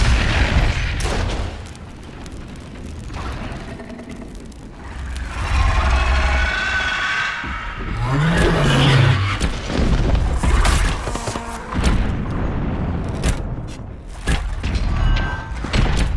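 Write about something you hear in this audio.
A fire crackles on the ground.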